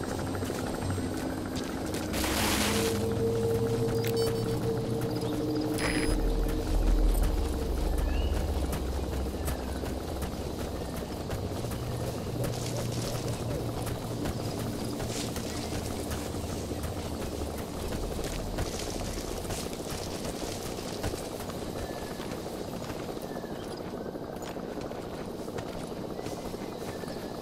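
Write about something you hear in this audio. Footsteps rustle through tall grass at a steady crouching pace.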